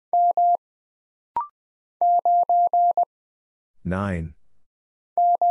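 Morse code beeps out in quick short and long tones.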